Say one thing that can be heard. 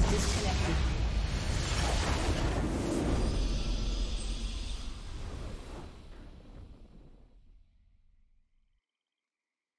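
A deep rumbling explosion booms and slowly fades away.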